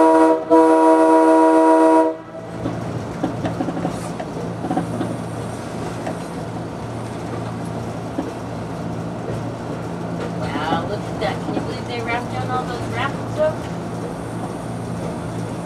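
Steel wheels rumble and click over the rails.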